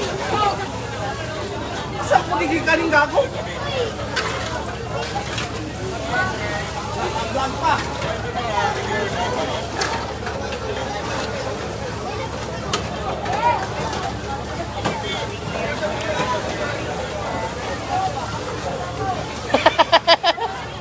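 Water hisses as it is sprayed from a fire hose.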